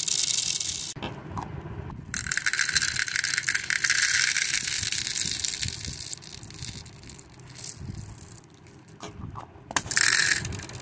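A plastic lid twists onto a jar.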